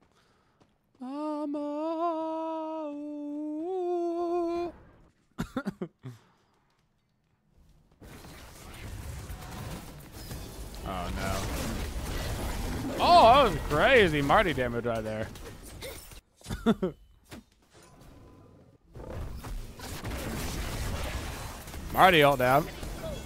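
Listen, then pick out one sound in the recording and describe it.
A man talks with animation into a close microphone, at times singing out long notes.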